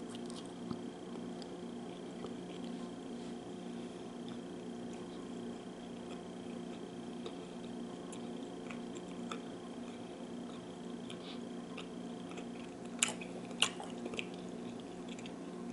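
A woman chews with soft, wet mouth sounds close up.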